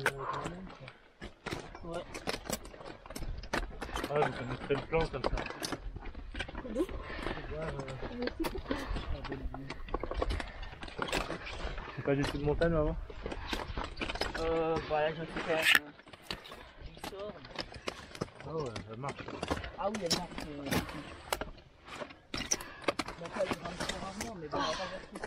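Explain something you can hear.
Climbing boots scrape and tap on rock.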